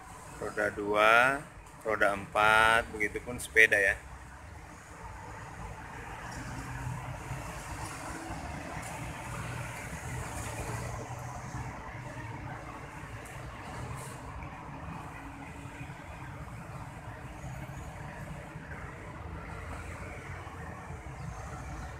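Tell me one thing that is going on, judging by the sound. Traffic rumbles steadily along a nearby street outdoors.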